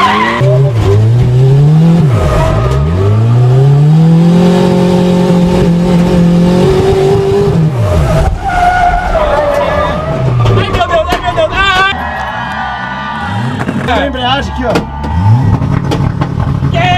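A car engine revs hard, its pitch rising and falling.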